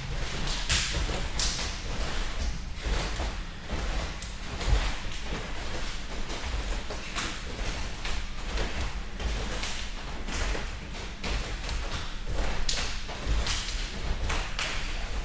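Bare feet shuffle and thump on a padded mat.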